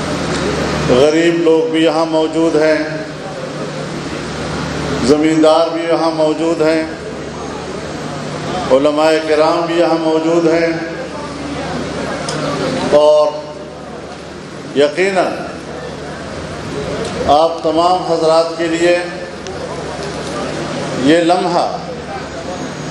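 An elderly man speaks forcefully through a loudspeaker in short bursts, echoing outdoors.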